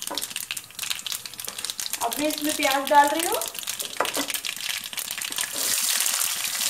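Spices crackle and sizzle in hot oil in a pan.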